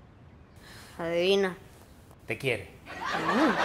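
A young boy answers briefly, close by.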